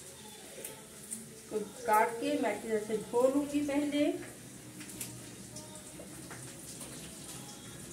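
Hands toss and mix food in a metal bowl.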